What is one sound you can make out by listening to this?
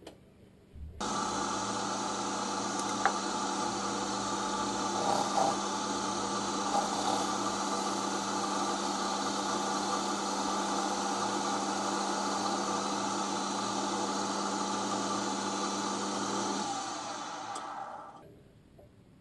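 A lathe motor runs with a steady whir, then winds down.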